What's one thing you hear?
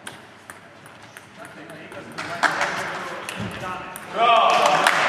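A ping pong ball clicks back and forth across a table and paddles.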